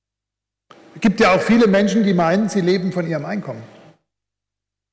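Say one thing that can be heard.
An older man speaks with animation into a microphone, heard through loudspeakers in a large hall.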